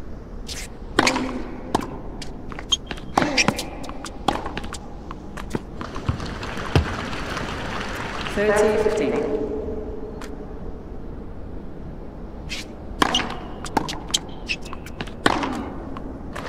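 A tennis ball is hit back and forth with rackets, with sharp pops.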